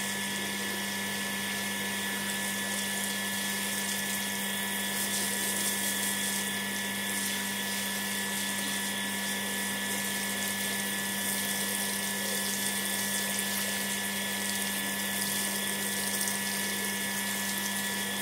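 Water sprays from a hose and splashes onto a wet mat.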